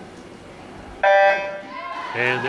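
A start beep sounds sharply.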